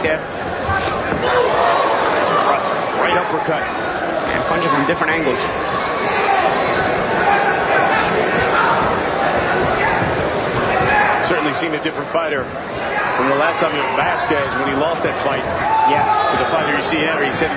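A crowd cheers and murmurs in a large arena.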